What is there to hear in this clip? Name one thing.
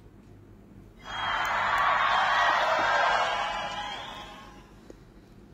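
A bright magical shimmer swells and slowly fades.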